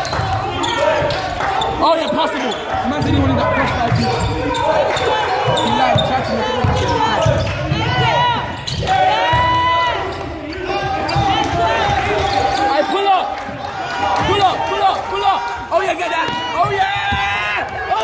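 Sneakers squeak sharply on a wooden floor in an echoing hall.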